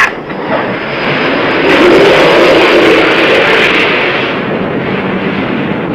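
A jet engine roars loudly.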